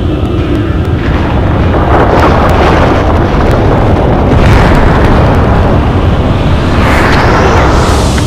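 A deep rumbling roar swells.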